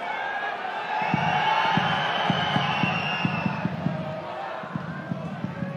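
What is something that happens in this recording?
A stadium crowd roars and cheers outdoors.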